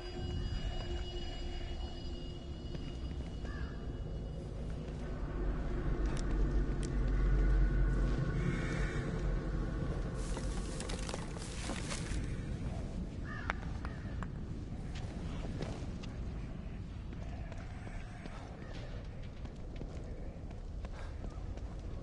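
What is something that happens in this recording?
Footsteps walk on hard pavement outdoors.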